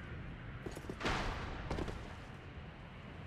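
A heavy thud sounds as a figure drops and lands.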